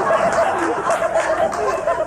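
A group of young men laugh loudly.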